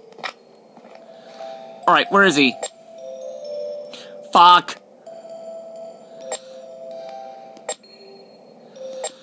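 Electronic game tones beep and hum from a small speaker.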